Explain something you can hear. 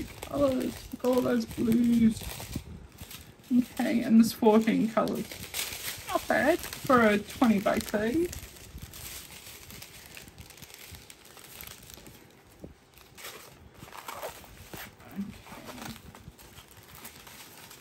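Plastic packaging crinkles and rustles as it is handled.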